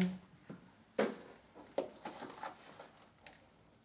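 Gravel or pebbles rattle as they are scooped into a tub.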